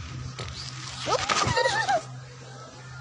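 A young girl squeals and babbles playfully close to a microphone.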